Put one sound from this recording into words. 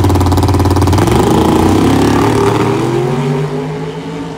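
A drag racing car's engine revs up and roars as the car launches away.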